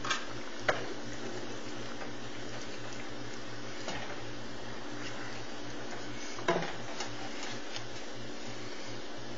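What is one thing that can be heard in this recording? A sauce simmers and bubbles in a pan.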